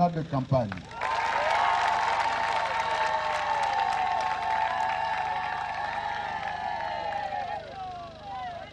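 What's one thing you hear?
A crowd sings loudly together outdoors.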